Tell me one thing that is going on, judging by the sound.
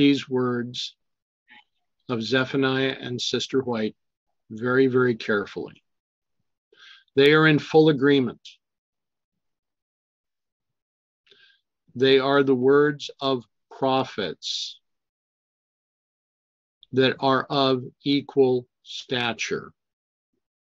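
A middle-aged man speaks calmly through an online call, in short bursts with pauses.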